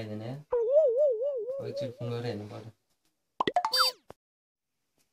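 A phone plays warbling, chirping sounds through its small speaker.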